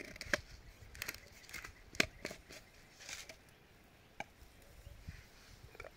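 Small metal and plastic objects clink and tap close by.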